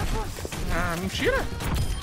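A gun fires rapid blasts in a video game.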